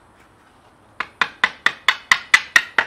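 A hammer strikes a metal chisel in quick, ringing blows.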